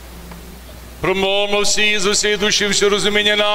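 A man chants a melody in a large echoing room.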